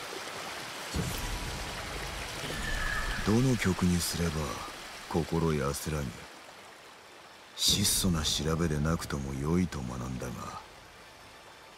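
A man speaks calmly and slowly.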